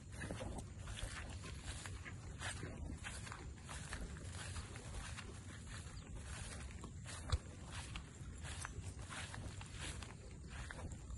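Footsteps swish and crunch through dry grass.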